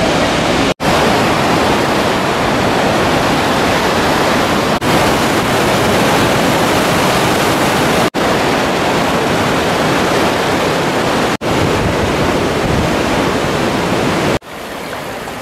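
Rushing water roars loudly and steadily nearby.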